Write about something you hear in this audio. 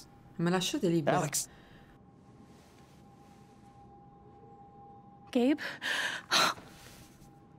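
A young woman speaks briefly into a close microphone.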